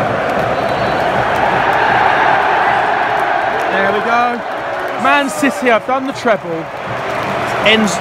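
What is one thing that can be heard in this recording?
A huge stadium crowd roars steadily, echoing around a vast open space.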